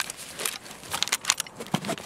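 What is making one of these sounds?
A rifle's metal parts click as it is handled.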